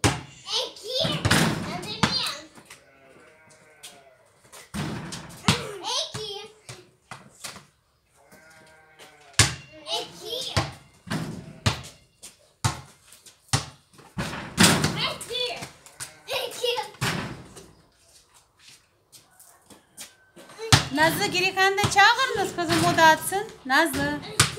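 A ball bounces on concrete.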